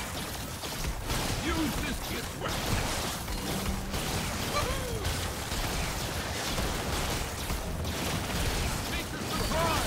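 Magical spell effects whoosh and crackle.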